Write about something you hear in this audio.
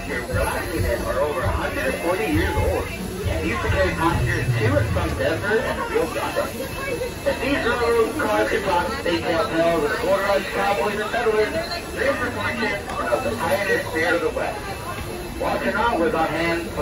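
A crowd of people chatters nearby, outdoors.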